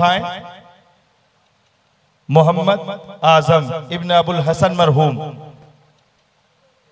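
A man speaks with animation through a loudspeaker in a large echoing hall.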